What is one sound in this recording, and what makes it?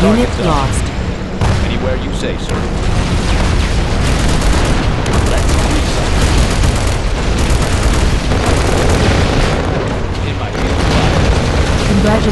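Gunfire rattles steadily.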